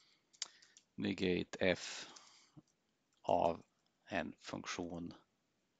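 A man speaks calmly and close to a microphone, in short phrases with pauses.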